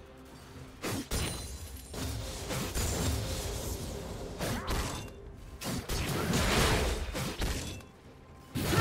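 Video game spell effects whoosh and clash in a fight.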